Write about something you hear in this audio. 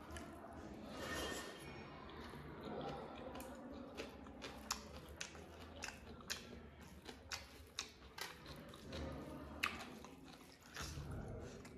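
A man chews food with his mouth open, smacking close to a microphone.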